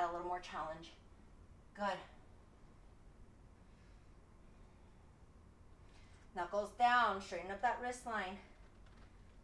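A young woman speaks calmly and close by, in short bursts.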